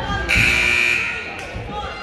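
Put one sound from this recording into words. A referee blows a sharp whistle in an echoing gym.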